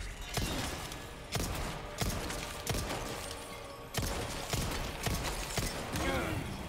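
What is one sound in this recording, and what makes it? Gunshots fire in quick succession, each with a sharp bang.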